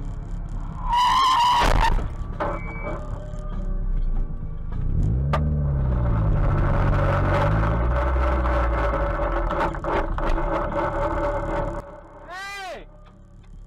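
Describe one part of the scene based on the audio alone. A car engine hums as the car drives along a road.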